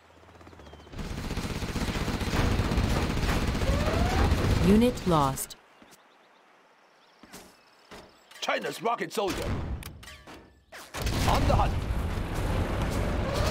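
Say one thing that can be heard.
Cannons fire in a loud battle.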